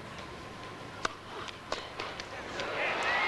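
A tennis ball is struck by rackets in a large echoing hall.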